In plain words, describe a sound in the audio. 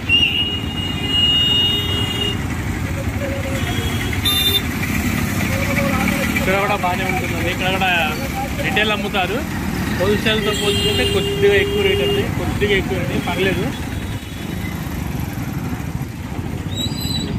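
Motor scooters and auto rickshaws rumble by on a busy street.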